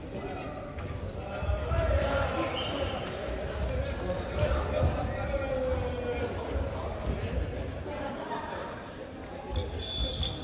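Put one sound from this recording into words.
Men talk at a distance in a large echoing hall.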